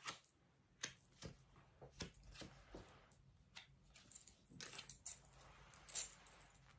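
Playing cards shuffle and slap softly onto a table.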